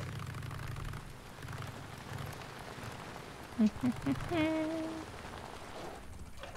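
A motorcycle engine rumbles at low speed.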